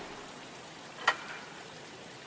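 Wooden window shutters knock as they swing open.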